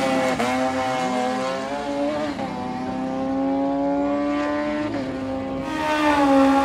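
A motorcycle engine screams as it races away and fades into the distance.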